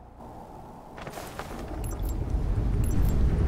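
Wind rushes and roars, growing louder.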